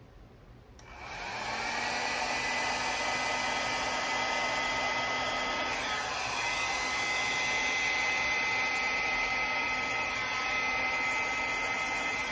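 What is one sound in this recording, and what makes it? A hair dryer blows with a steady, loud whir.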